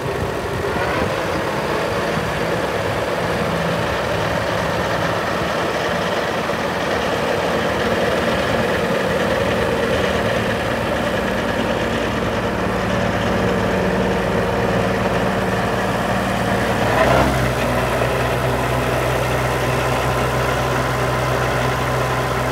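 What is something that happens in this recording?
A tractor engine runs steadily nearby.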